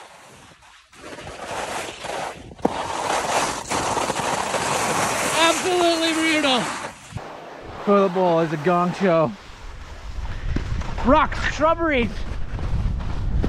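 Skis scrape and hiss over crusty snow.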